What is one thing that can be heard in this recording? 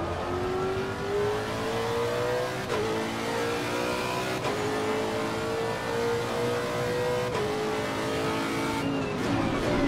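A racing car engine roars, rising in pitch through the gears.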